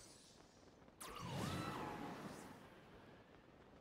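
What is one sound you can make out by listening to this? A gust of wind whooshes upward with a rushing roar.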